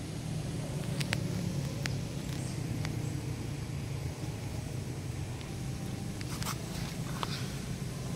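Dry leaves rustle under a monkey's feet.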